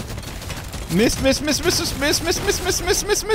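An explosion bursts loudly.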